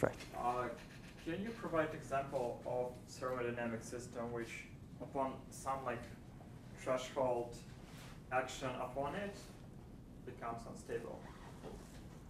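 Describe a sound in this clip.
A middle-aged man lectures calmly into a clip-on microphone.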